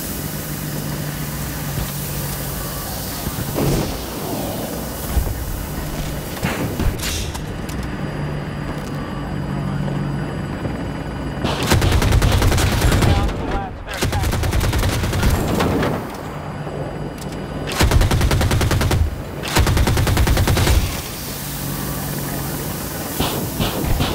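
A helicopter engine and rotor drone steadily.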